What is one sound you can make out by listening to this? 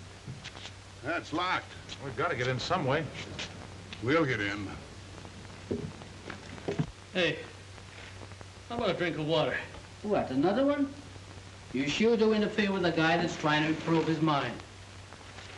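Men speak in low voices, close by.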